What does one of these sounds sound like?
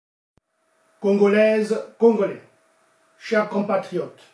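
A middle-aged man speaks calmly and formally into a close microphone.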